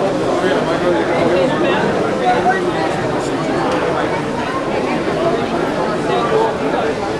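A crowd of people chatter all around.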